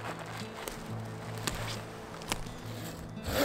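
Dry branches crackle underfoot.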